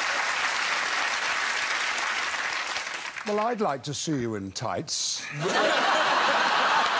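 A group of people laughs loudly.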